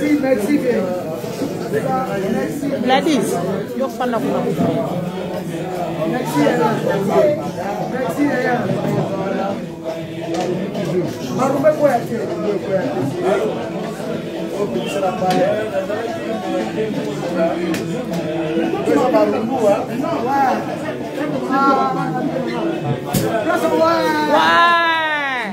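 A crowd of men and women chatter loudly close by.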